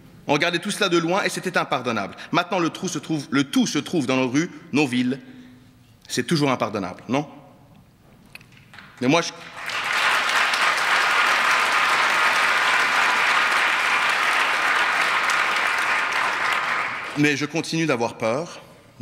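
A man speaks calmly into a microphone in a large hall.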